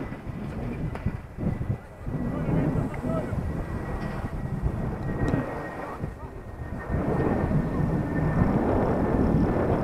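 Wind buffets loudly in gusts outdoors.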